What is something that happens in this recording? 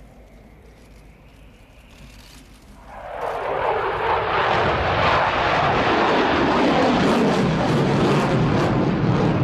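A jet engine roars overhead, swelling suddenly into a loud, crackling thunder.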